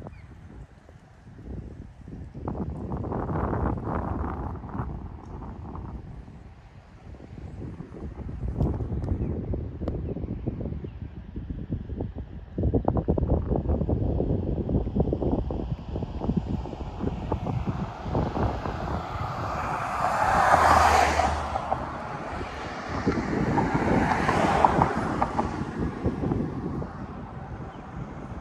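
Wind buffets the microphone in gusts outdoors.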